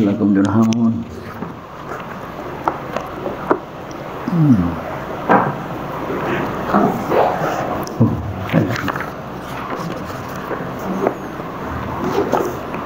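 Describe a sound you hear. An elderly man speaks calmly through a headset microphone.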